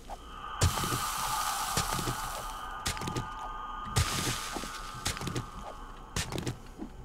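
A pickaxe strikes rock in sharp, repeated blows.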